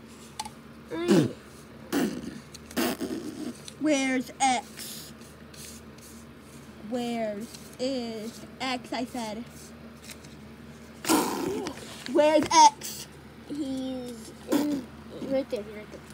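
A young child talks playfully nearby.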